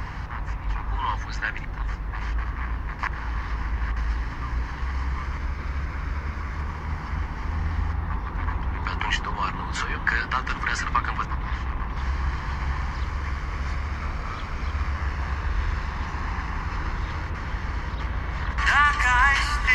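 A mobile phone's FM radio hisses and crackles with static while tuning between stations.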